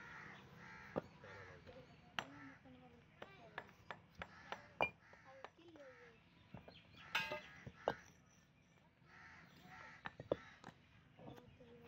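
Bricks clack and knock against each other.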